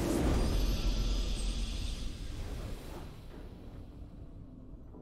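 A bright victory sound effect bursts out and slowly fades away.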